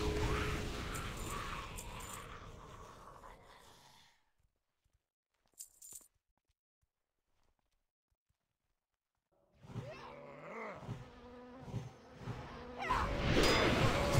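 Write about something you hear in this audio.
Game combat effects crash and whoosh.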